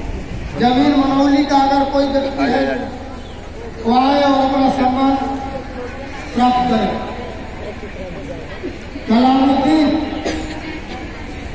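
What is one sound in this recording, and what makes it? A man calls out loudly through a loudspeaker in long, drawn-out phrases.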